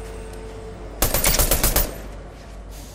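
Rapid gunshots fire in a quick burst.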